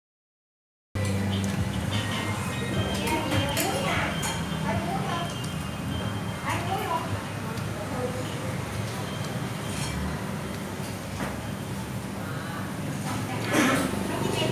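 Chopsticks click lightly against a plate.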